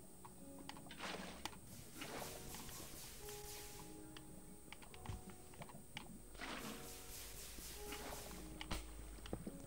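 Water gushes and splashes.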